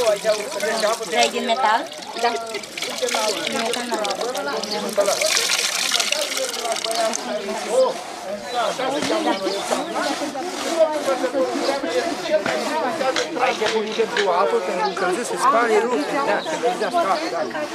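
Women talk and chatter nearby outdoors.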